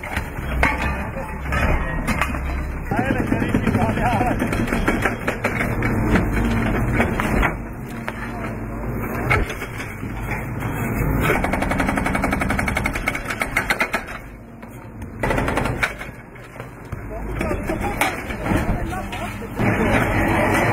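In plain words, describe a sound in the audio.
Chunks of concrete crack and crash down.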